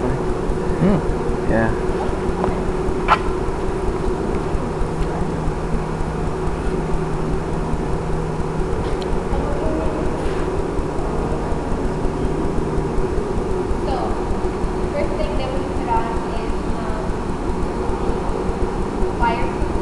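A man speaks to a group in a room with echo.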